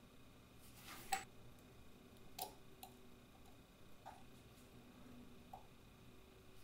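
Metal tweezers click softly against small watch parts.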